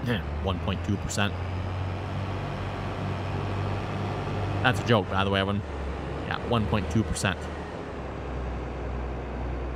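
A combine harvester's engine hums steadily.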